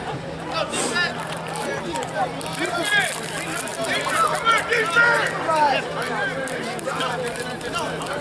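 A crowd of people chatter and call out in an open outdoor space.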